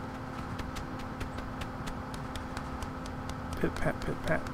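A goose's feet patter quickly on hard ground.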